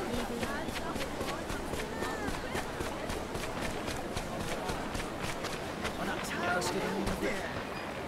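Footsteps run quickly over packed dirt.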